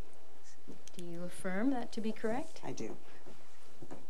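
A second woman repeats the words, speaking into a microphone.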